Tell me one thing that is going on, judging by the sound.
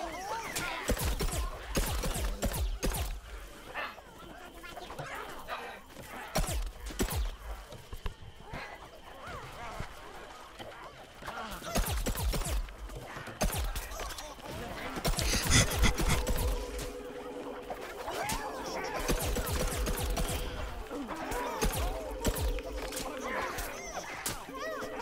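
Guns fire in quick bursts of shots.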